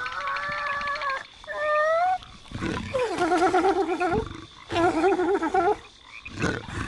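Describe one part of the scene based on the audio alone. A creature lets out a series of warbling, wailing calls.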